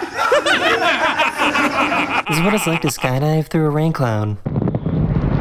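Men laugh and talk nearby.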